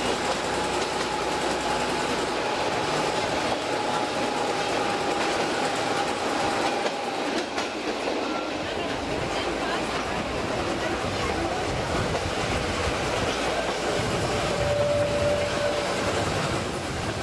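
A small open train rattles and clatters steadily along its track.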